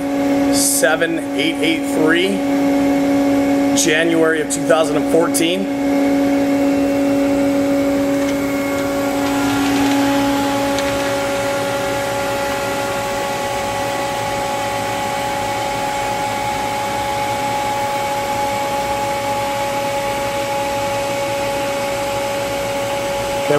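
Electrical machinery hums steadily.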